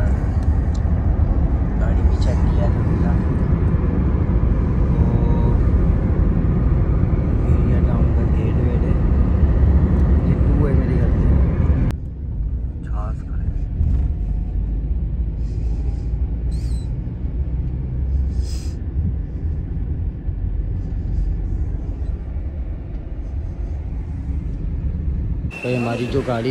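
A car rumbles steadily along a road.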